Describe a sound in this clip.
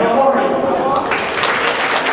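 A man speaks into a microphone over loudspeakers in a large hall.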